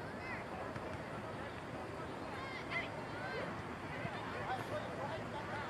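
Young players shout to each other far off across an open field.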